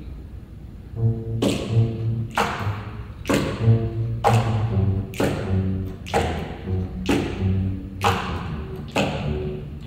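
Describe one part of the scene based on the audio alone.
Double basses pluck a steady bass line.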